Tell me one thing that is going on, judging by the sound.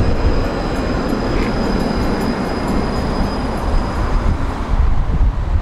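A tram whines steadily as it passes.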